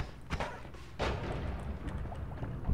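A video game explosion booms.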